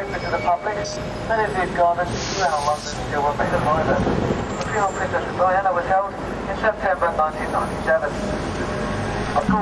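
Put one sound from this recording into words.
Traffic rumbles by on a street outdoors.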